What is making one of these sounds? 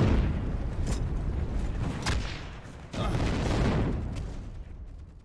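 Pistol shots crack sharply nearby.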